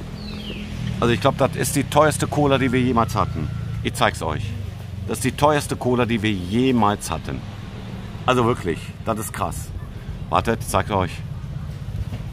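A middle-aged man talks casually and close to the microphone.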